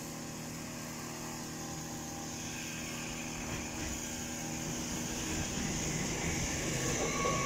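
A bi-mode multiple-unit train approaches and passes at speed.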